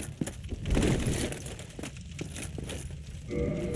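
A locked door rattles.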